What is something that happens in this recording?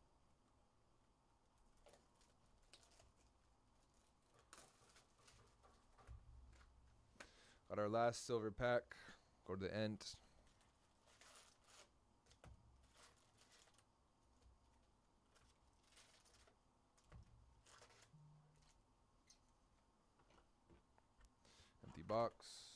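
Cardboard packaging and plastic wrappers rustle and crinkle in hands.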